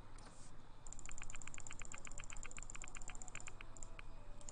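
Rapid soft electronic ticks sound in quick succession.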